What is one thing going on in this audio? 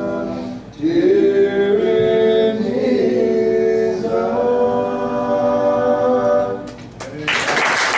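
Men sing together through a microphone.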